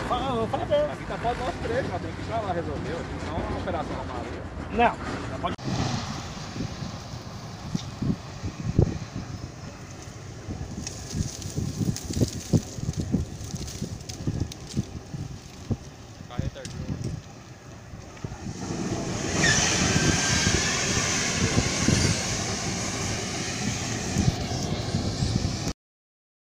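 A large fire roars and crackles nearby.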